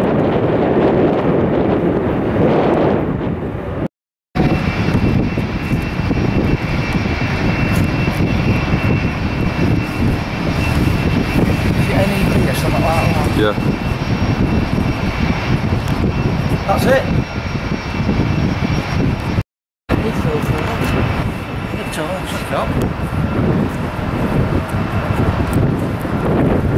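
Jet engines roar steadily as a large airliner taxis nearby.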